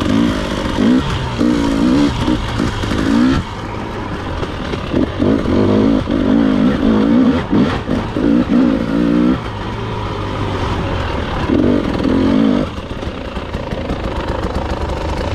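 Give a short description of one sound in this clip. A dirt bike engine revs up and down, rising and falling in pitch.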